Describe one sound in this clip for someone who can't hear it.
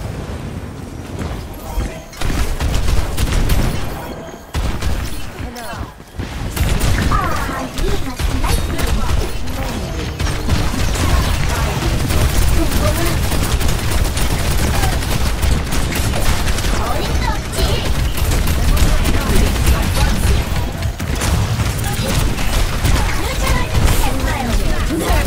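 Rapid game gunfire crackles and pops.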